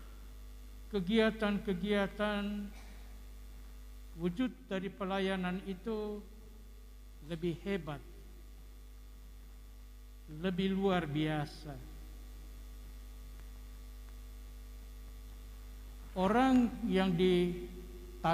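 An elderly man speaks slowly into a microphone, with long pauses, in a reverberant hall.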